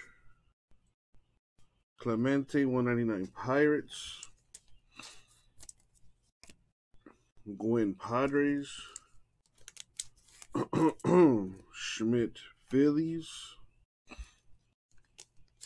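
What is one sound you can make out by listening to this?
Trading cards slide and rustle between fingers.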